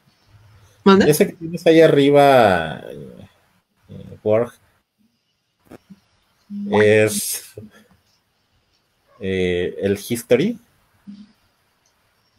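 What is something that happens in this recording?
A man speaks with animation over an online call, in short bursts with pauses.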